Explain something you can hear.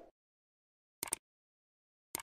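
A computer mouse clicks twice.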